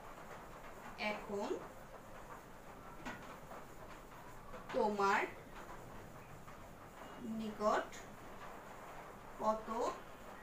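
A woman speaks calmly in short phrases, with pauses between them.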